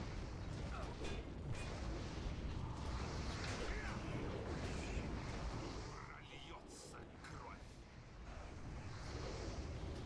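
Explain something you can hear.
Spell effects crackle and burst in a busy fantasy battle.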